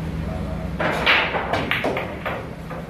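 Pool balls clack together.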